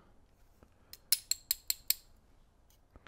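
Small metal lock parts click lightly.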